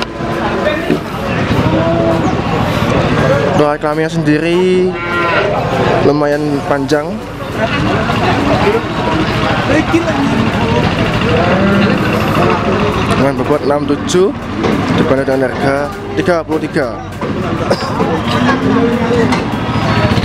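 A crowd of men chatters loudly outdoors.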